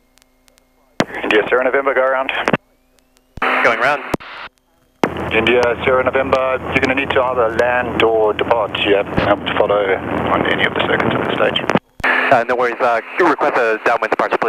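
A man talks calmly through a headset microphone.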